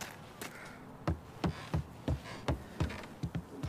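Heavy footsteps thump up wooden stairs.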